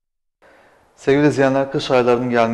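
A man speaks clearly and calmly into a microphone, like a news presenter.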